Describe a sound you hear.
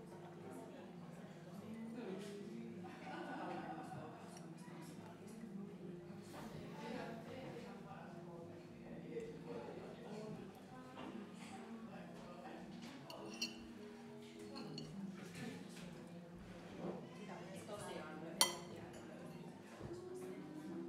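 A fork scrapes and clinks against a china plate.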